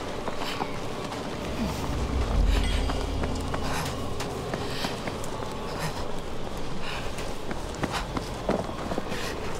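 A strong wind howls and gusts through a snowstorm outdoors.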